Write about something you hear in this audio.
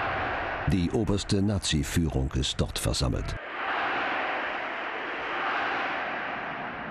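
A large crowd cheers and roars in the distance.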